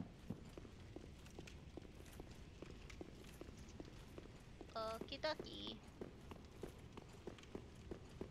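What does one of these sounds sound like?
Armoured footsteps clank rhythmically on stone.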